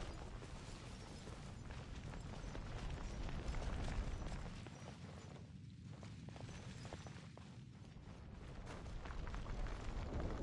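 Footsteps patter quickly over ground.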